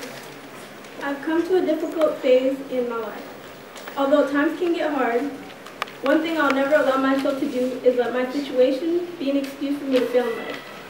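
A young woman reads aloud calmly into a microphone.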